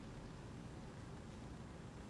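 A cat paws at a curtain, rustling the fabric.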